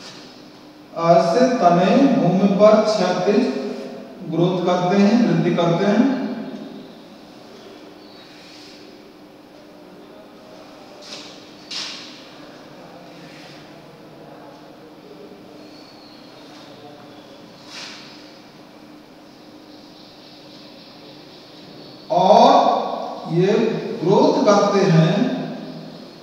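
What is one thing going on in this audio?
A man speaks clearly and steadily, close by.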